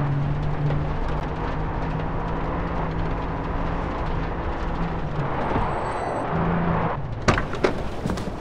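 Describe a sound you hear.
A car engine labours as a vehicle drives.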